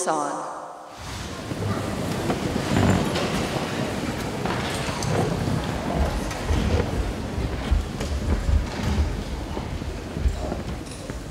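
A large audience applauds and cheers.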